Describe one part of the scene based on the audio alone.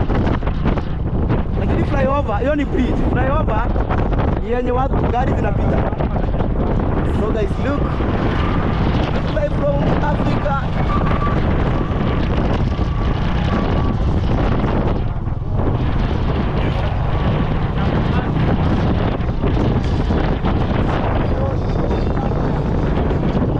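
A motorcycle engine runs steadily close by.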